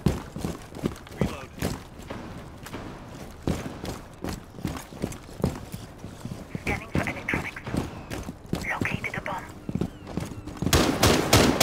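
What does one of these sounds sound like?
Quick footsteps run over hard ground.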